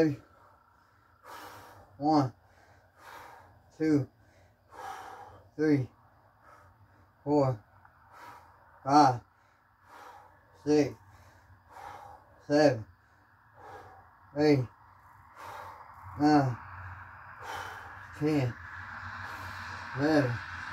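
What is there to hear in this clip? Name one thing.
A man grunts with effort at each repetition.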